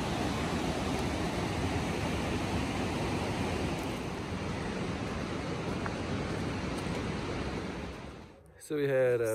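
A river rushes loudly nearby.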